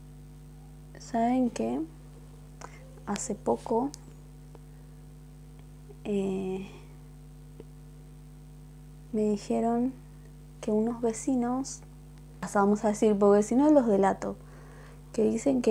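A young woman talks calmly and close into a small microphone, in short bursts with pauses.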